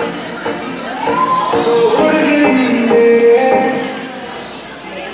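Music plays loudly through loudspeakers in a large hall.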